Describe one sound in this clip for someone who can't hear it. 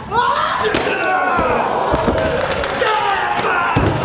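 A man shouts with strain nearby.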